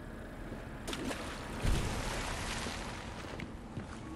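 A grenade bursts, freezing into ice with a crackle.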